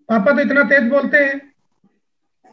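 A middle-aged man talks calmly through a microphone on an online call.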